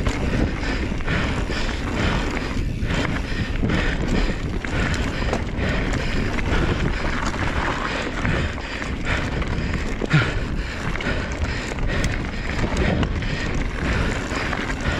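Bike tyres rumble and crunch over a dirt trail.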